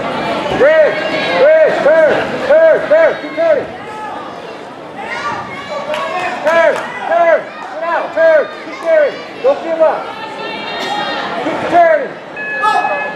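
Spectators shout loud, repeated cries of encouragement.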